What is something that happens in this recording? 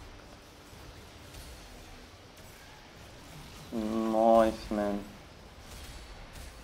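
Magical spell effects whoosh and crackle in a battle.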